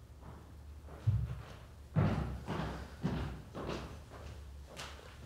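Footsteps approach on a hard floor.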